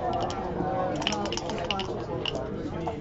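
Dice rattle and clatter onto a board.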